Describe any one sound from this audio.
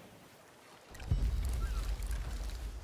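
Rough sea waves rush and churn close by.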